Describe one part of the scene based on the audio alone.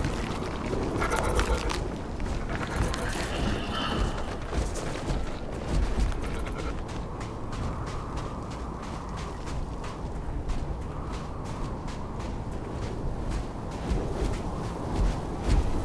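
Footsteps crunch steadily on rocky ground.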